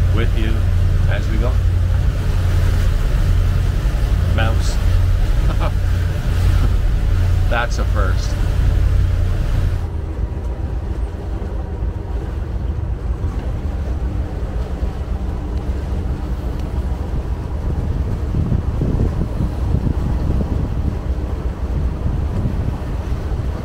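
A boat engine rumbles steadily.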